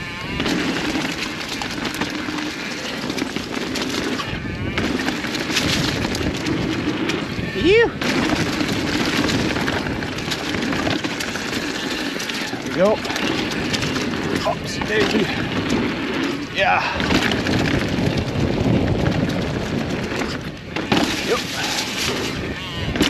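Bicycle tyres roll and crunch over dry leaves and dirt.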